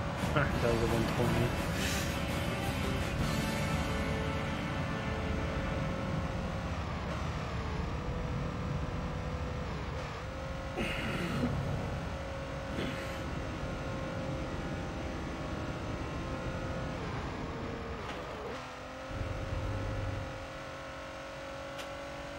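A racing car engine drones steadily and slowly winds down.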